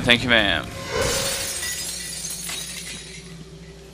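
Glass shatters and tinkles onto a floor.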